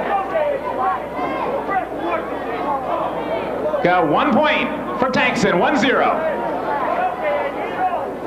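A man calls out loudly across the hall.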